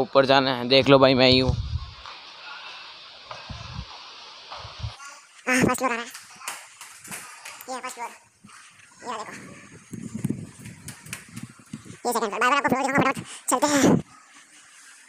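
A child talks with animation close by.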